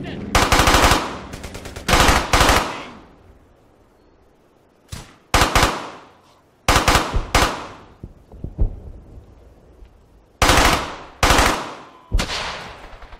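Loud gunshots crack in bursts and echo away.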